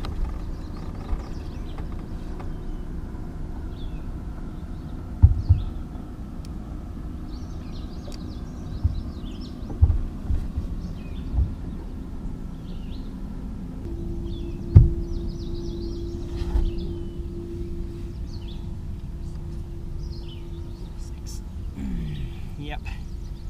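Wind blows across a microphone outdoors.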